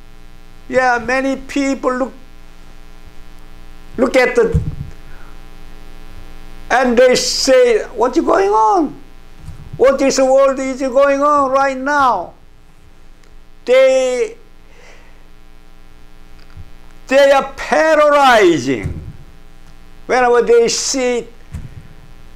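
An elderly man sings with feeling through a microphone, in long drawn-out phrases with pauses between them.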